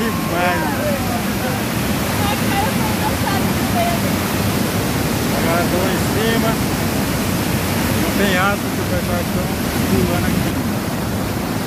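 A young man talks close by with animation.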